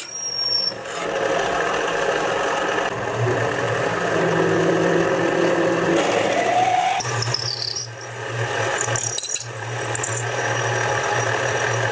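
A drill bit grinds and squeals as it bores into metal.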